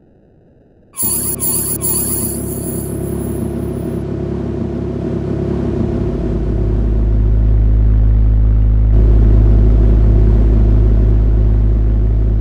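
A car engine idles with a deep, steady rumble that grows louder.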